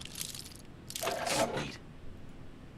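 A lock snaps open with a sharp metallic rattle.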